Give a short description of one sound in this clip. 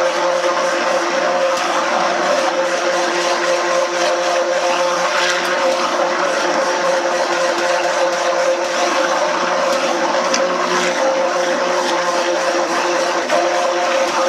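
A hand blender whirs steadily while blending liquid.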